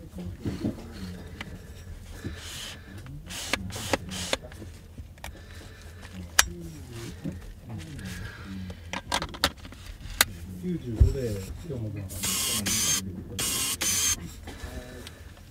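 A lens ring rubs with a soft scraping as it turns.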